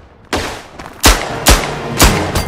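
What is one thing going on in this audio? A pistol fires loud shots that echo in a tunnel.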